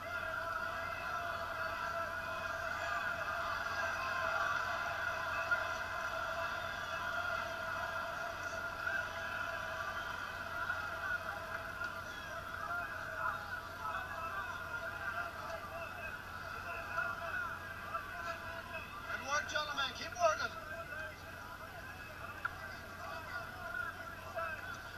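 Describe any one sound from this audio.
A crowd cheers and shouts steadily in a large hall.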